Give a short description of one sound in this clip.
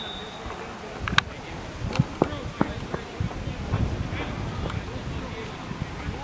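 Players shout to each other from a distance across an open outdoor field.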